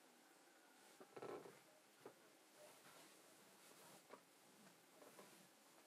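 Footsteps shuffle softly across a floor.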